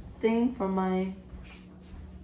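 A young woman speaks brightly close by.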